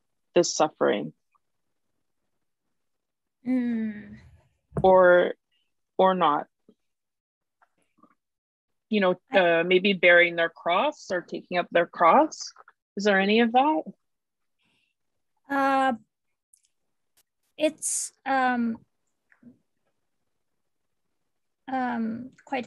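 A young woman speaks thoughtfully over an online call, with pauses.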